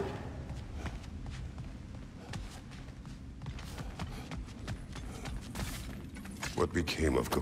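Heavy footsteps thud on a stone floor.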